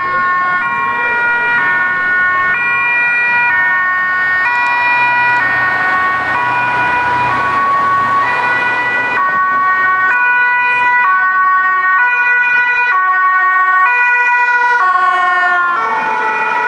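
Two-tone sirens of emergency vehicles wail, drawing closer.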